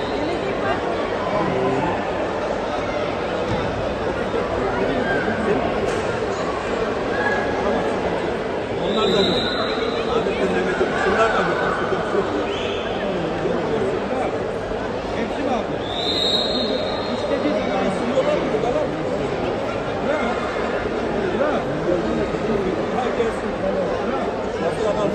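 A crowd in a large echoing hall chatters and calls out steadily.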